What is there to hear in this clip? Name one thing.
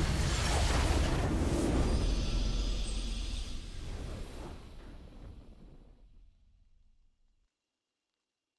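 A triumphant game fanfare booms and then fades away to silence.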